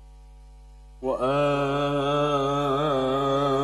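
An elderly man sings a long, wavering held note loudly through a microphone.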